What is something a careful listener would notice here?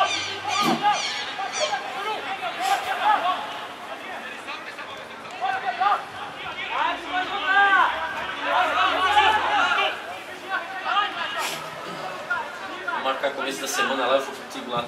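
Young men shout to each other across an open field in the distance.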